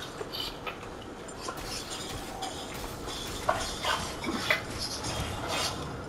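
Pickaxes swish through the air in quick swings.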